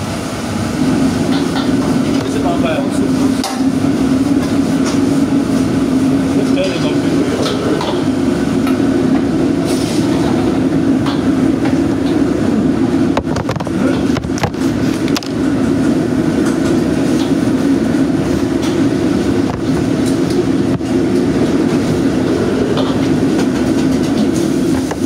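Gas burners roar steadily.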